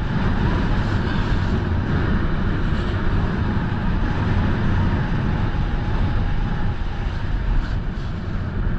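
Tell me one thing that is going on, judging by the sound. Wind rushes loudly past close by.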